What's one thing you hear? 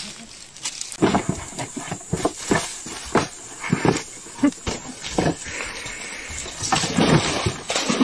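Chimpanzees shriek and scream in short bursts.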